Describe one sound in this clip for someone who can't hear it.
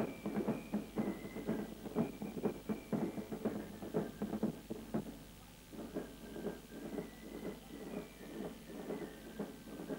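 A bass drum booms in a steady marching beat.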